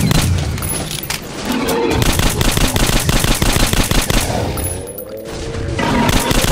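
A rifle fires rapid, loud bursts.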